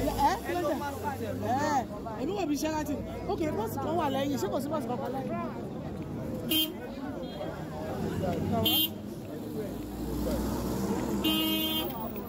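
A crowd of men and women talk and chatter close by outdoors.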